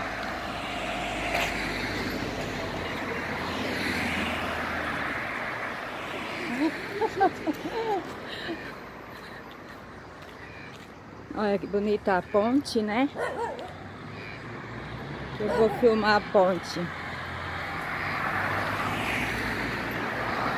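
A car drives past on an asphalt road.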